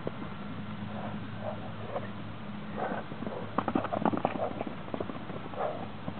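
A man shouts to the horses outdoors.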